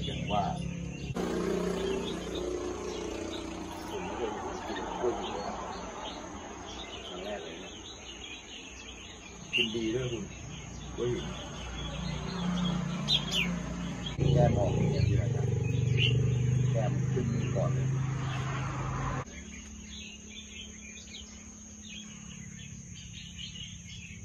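A small bird chirps in short, high calls.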